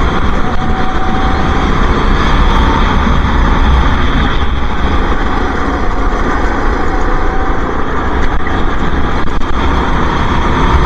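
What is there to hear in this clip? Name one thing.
A go-kart engine buzzes loudly and steadily up close.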